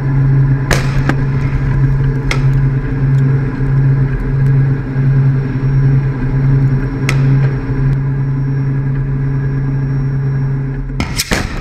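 A heavy engine rumbles steadily close by.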